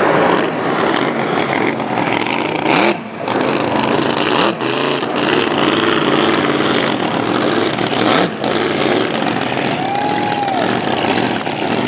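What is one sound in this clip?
A motorboat engine drones across the water, its pitch rising and falling.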